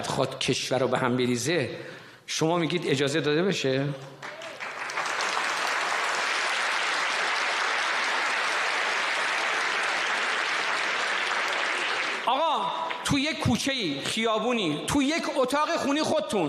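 An elderly man speaks forcefully through a microphone, echoing in a large hall.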